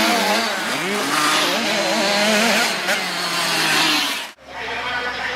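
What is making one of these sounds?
Motorcycle engines rev loudly.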